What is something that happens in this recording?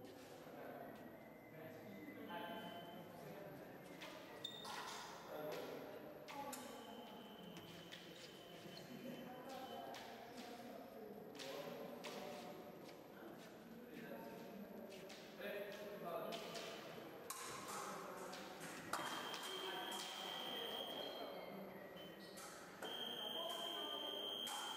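Fencers' shoes thud and squeak on the floor.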